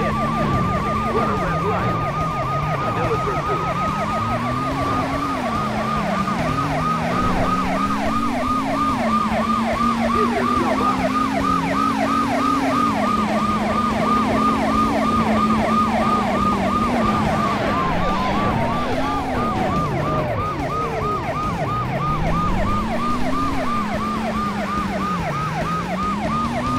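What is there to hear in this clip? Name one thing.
A police siren yelps rapidly and steadily.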